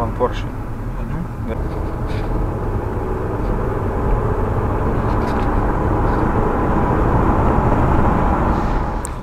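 A car engine revs up steadily as the car speeds up.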